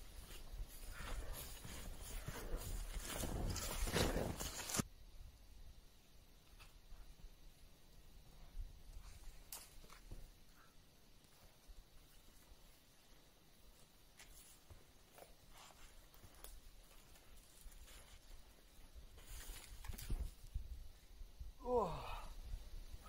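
Footsteps crunch and swish through deep snow close by.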